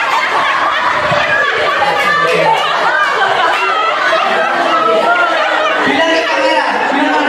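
Young women laugh and chatter nearby.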